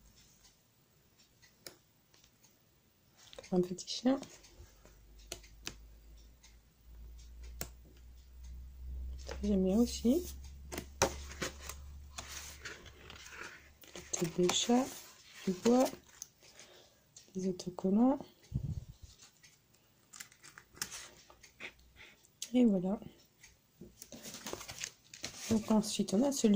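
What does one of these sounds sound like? Thick sheets of paper rustle and flap as pages are turned one by one.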